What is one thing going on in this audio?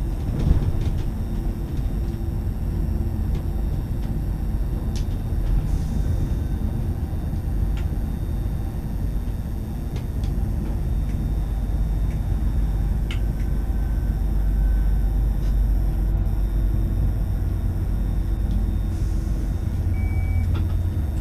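Wheels click over rail joints.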